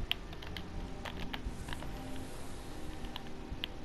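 A magic spell hums and shimmers.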